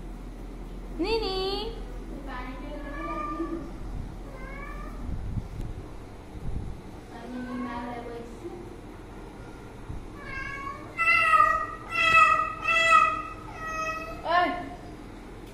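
A cat meows loudly and repeatedly.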